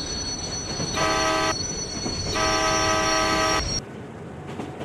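A train horn blares loudly twice.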